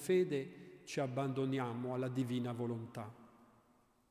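An elderly man chants in a large echoing hall through a microphone.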